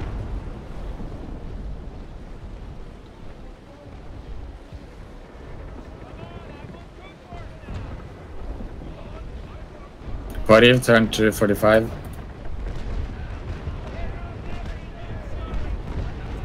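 Waves wash against a sailing ship's hull.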